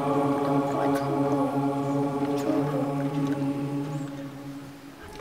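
A choir holds a sustained chord in a large echoing hall.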